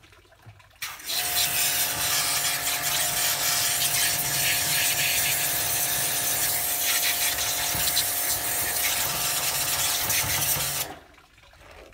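A pressure washer motor hums loudly and steadily.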